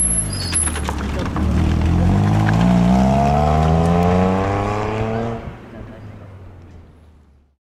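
A rally car engine revs rise and fall, then fade into the distance.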